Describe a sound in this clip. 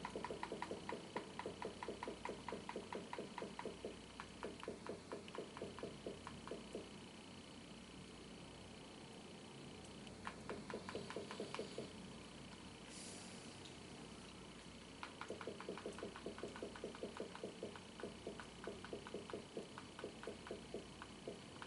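Quick electronic menu ticks sound in rapid bursts.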